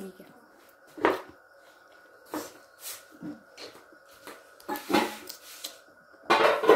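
A young boy chews food with wet smacking sounds close by.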